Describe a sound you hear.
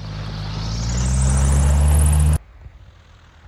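A small plane's engine roars loudly close by as it passes.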